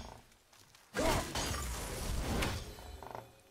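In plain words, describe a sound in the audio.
An axe swings through the air with a heavy whoosh.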